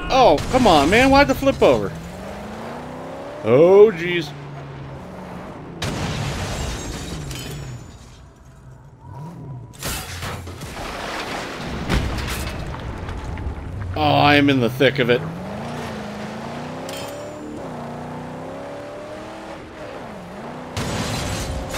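A car engine roars and revs as a car drives over rough ground.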